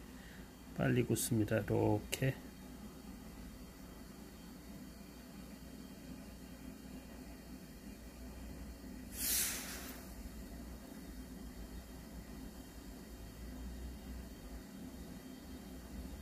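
Hot liquid wax pours in a thin stream into a mould.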